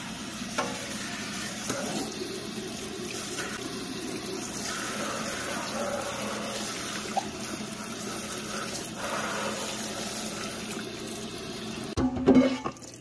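Water sprays hard and splashes onto a keyboard.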